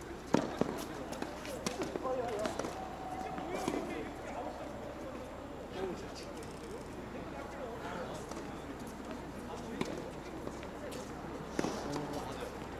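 Tennis balls pop off rackets outdoors, with short gaps between hits.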